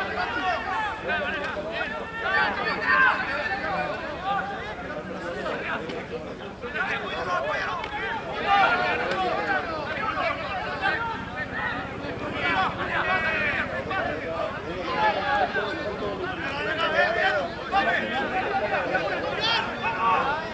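Spectators on the sideline shout and cheer excitedly outdoors.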